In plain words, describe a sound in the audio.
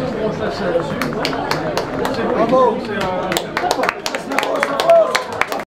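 Hands clap sharply and unevenly in a crowd.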